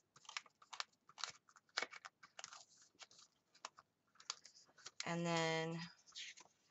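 Paper pages rustle and tap as hands handle a ring-bound planner.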